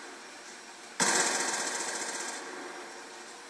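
Gunshots from a video game crack through a television speaker.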